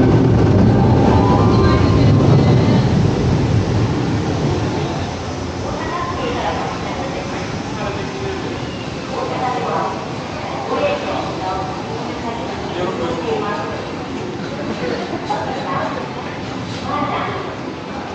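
Voices of passing shoppers murmur nearby in a covered arcade.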